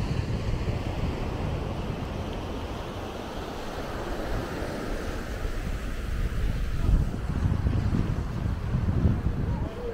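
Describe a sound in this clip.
Wind blows across the microphone outdoors in gusty rumbles.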